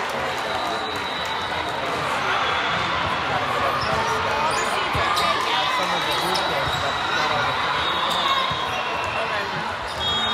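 A volleyball is hit with a slap.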